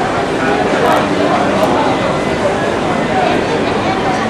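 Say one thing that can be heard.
A monorail train hums along its track.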